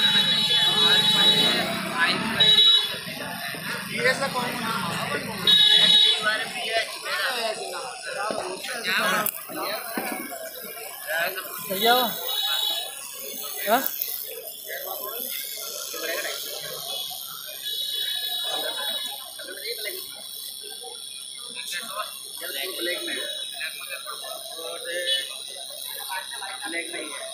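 A tattoo machine buzzes in short bursts close by.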